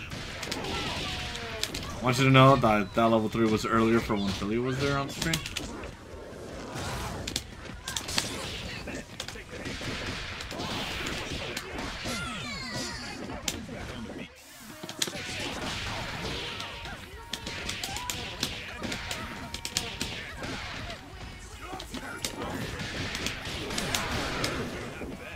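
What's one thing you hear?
Punches and kicks land with sharp, rapid smacks and thuds.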